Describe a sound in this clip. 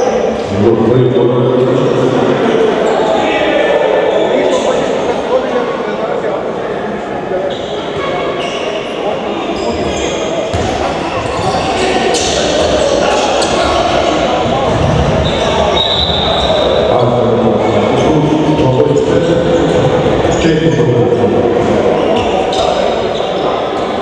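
Young men shout to each other across the court.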